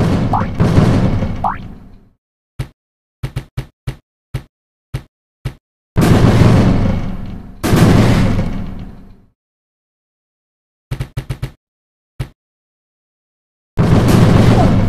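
Cartoon bombs explode with loud booming blasts.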